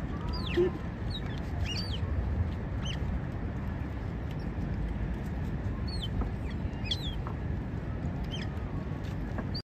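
Birds call with short, high, sliding chirps.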